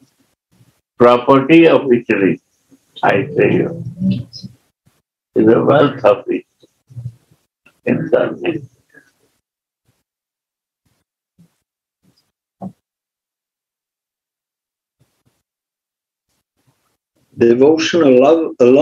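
An elderly man speaks calmly over an online call, with long pauses.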